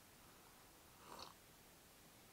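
A man slurps coffee from a cup.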